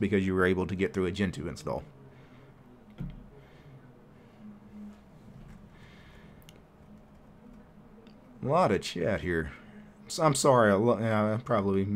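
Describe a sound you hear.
A middle-aged man talks calmly into a close microphone, with pauses.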